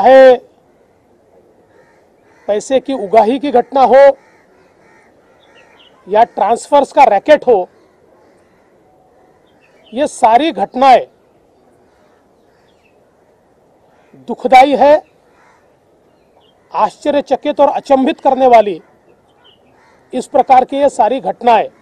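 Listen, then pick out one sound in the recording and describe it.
A middle-aged man speaks forcefully into microphones, in short bursts with pauses.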